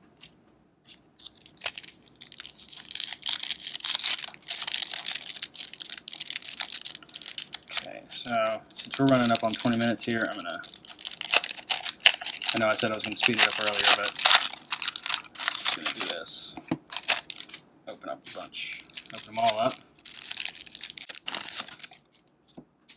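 A foil wrapper crinkles and tears as hands rip it open.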